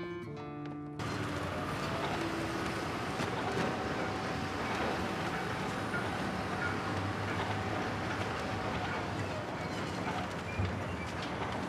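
Shovels scrape and dig into loose sand.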